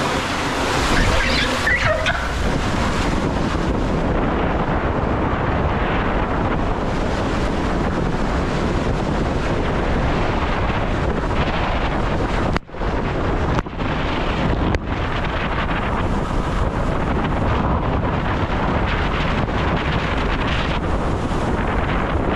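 Water rushes and splashes through an enclosed slide tube, echoing close by.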